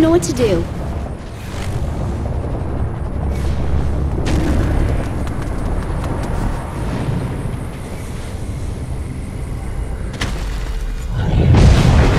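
Wind rushes loudly past at high speed.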